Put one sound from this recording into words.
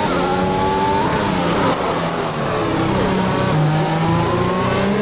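A racing car engine screams at high revs, dropping in pitch as the driver shifts down for a corner.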